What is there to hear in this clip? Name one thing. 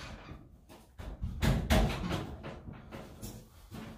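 A dryer knocks and rattles as a man shifts it.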